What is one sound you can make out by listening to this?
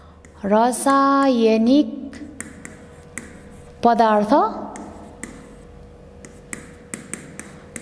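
A pen taps and scratches on a writing surface.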